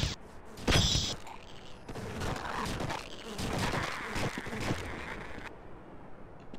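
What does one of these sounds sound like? Fiery bolts whoosh past in bursts.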